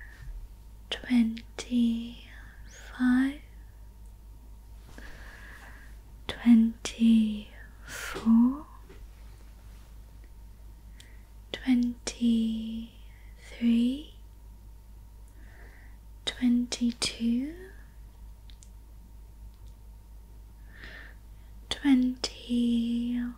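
A young woman makes soft mouth sounds close to a microphone.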